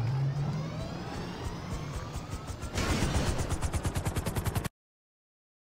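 A helicopter's rotor blades thump rapidly.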